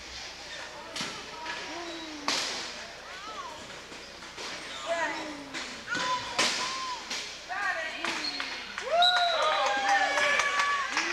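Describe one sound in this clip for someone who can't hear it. Wheelchairs clatter and bang into each other.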